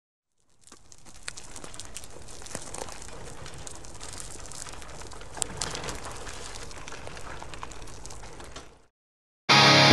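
Small wheels roll and crunch over gravel.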